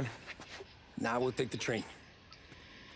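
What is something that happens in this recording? A man answers calmly, close by.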